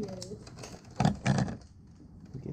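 Scissors clatter onto a table.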